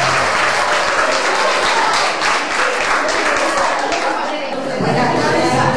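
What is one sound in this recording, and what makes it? A group of young women claps their hands.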